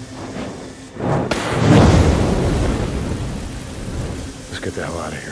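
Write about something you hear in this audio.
Flames burst up with a loud whoosh and crackle.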